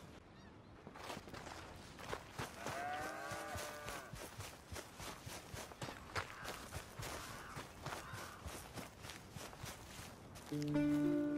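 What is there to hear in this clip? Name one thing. Footsteps run quickly over dirt and grass.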